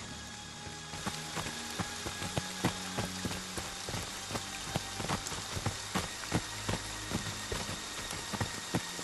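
Footsteps crunch on dry leaves outdoors.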